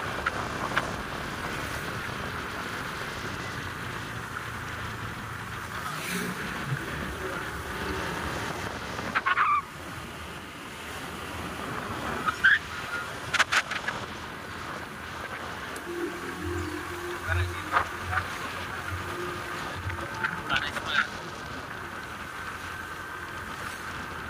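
Passing motorcycles buzz by.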